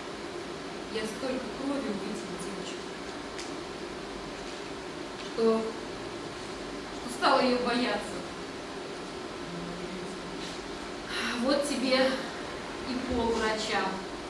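Women speak lines with expression, heard from a distance in a roomy hall.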